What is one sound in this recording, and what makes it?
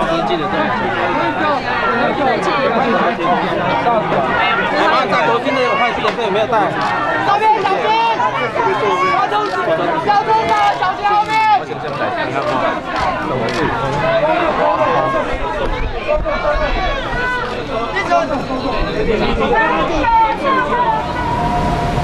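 A crowd of men talk and shout over one another close by.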